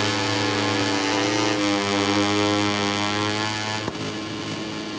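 Another motorcycle engine whines close ahead.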